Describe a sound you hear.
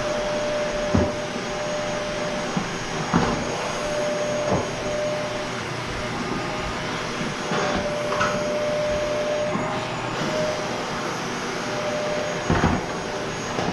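A vacuum cleaner's head knocks and bumps against the floor.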